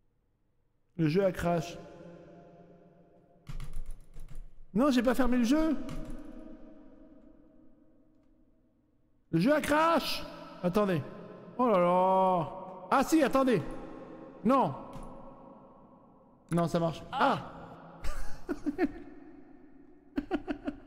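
A man talks with animation close to a microphone, in bursts.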